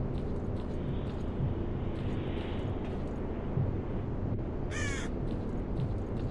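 Footsteps crunch on concrete.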